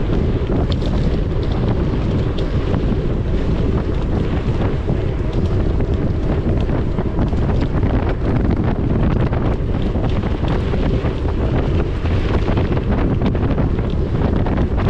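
Wind rumbles loudly against a microphone outdoors.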